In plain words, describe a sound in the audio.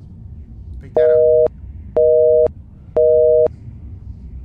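An old telephone rings in short bursts.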